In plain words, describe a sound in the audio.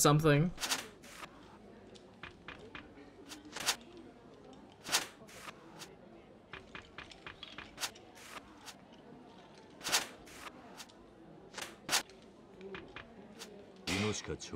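Playing cards snap down onto a table, one after another.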